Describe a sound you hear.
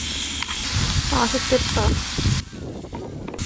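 Bacon sizzles and crackles loudly in a hot pan.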